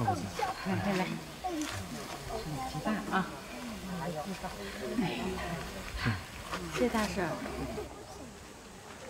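A woman speaks warmly up close.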